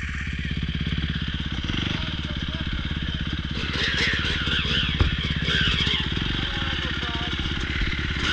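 Another dirt bike revs and rides past nearby.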